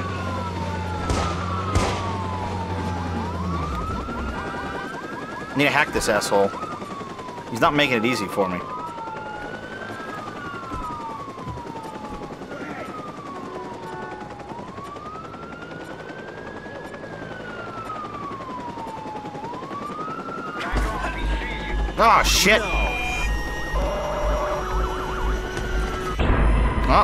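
A police siren wails up and down nearby.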